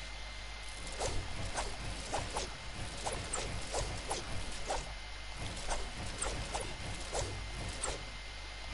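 Quick building clicks and thuds snap out in rapid succession.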